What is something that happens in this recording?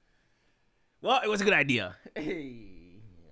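A young man laughs loudly.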